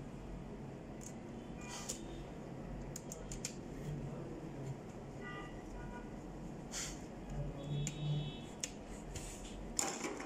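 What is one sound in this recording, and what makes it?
A screwdriver clicks faintly as it turns small screws.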